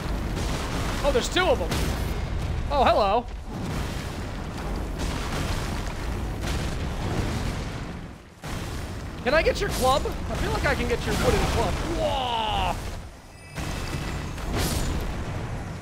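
Heavy weapon blows thud and clang.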